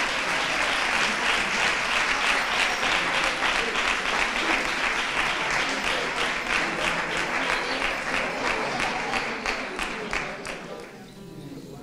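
Hands clap in a quick rhythm.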